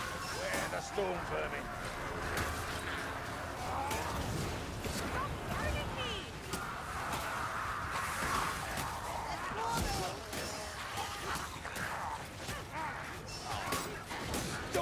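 Blades clash and strike with sharp impacts.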